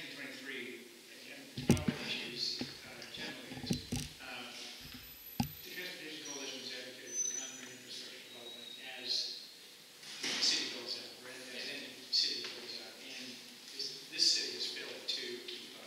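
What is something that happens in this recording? A man speaks calmly, heard from across a room.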